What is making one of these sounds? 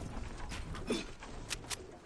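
Wooden planks knock into place with quick hollow thuds.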